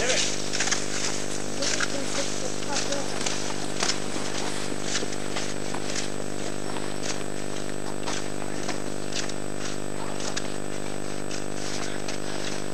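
Cross-country skis scrape and hiss over snow in a skating stride.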